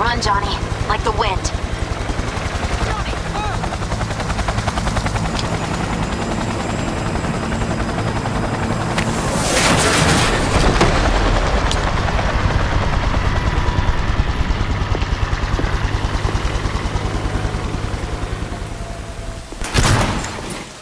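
An aircraft engine drones with a fast, throbbing beat.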